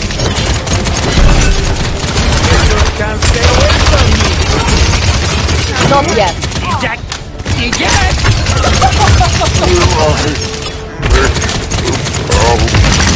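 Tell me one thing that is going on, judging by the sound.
Rapid gunfire rattles and booms in a video game.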